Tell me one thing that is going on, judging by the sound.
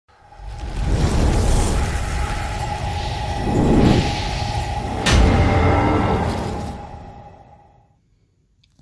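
A deep, booming rumble swells with whooshing sweeps and a sharp hit, then fades away.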